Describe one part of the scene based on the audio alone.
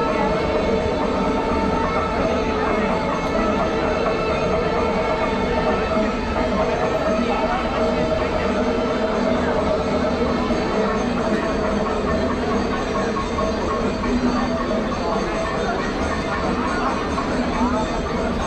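A large crowd murmurs in the open air.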